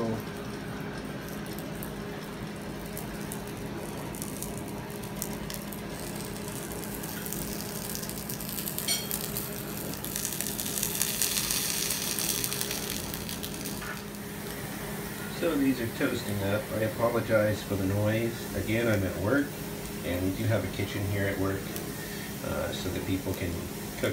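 Strips of meat sizzle gently in a hot frying pan.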